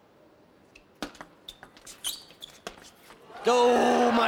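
A table tennis ball clicks back and forth between paddles and the table.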